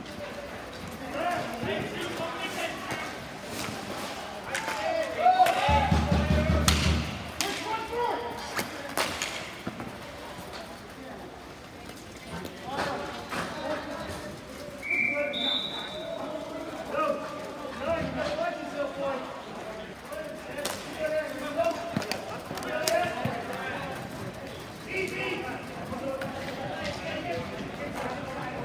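Hockey sticks clack and slap against a ball on a hard rink floor.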